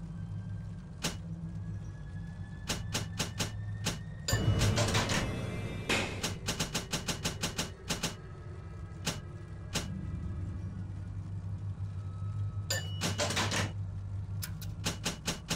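Short menu clicks tick again and again.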